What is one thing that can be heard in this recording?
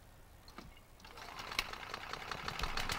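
A petrol lawn mower engine is pulled and sputters as it restarts.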